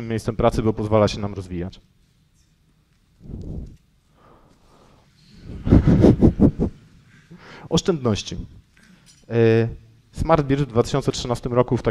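A man speaks with animation through a microphone.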